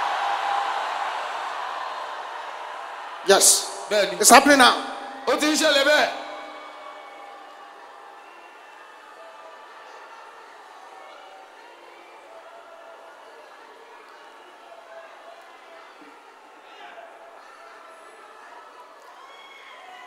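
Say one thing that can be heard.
A woman shouts loudly with emotion.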